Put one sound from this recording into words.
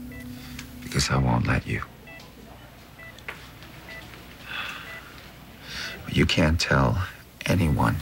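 A man speaks weakly and hoarsely, close by.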